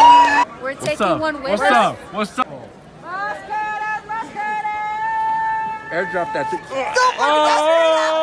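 A young man talks loudly close by outdoors.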